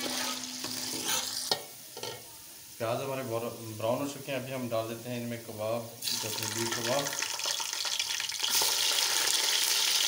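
Oil sizzles and crackles loudly in a pot.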